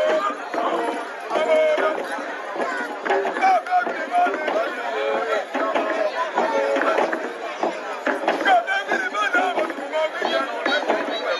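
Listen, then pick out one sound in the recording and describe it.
A masked dancer's costume rattles as the dancer moves.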